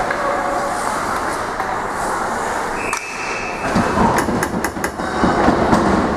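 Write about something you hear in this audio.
Sticks clack against a puck.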